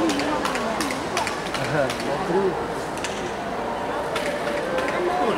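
A crowd of spectators murmurs in a large hall.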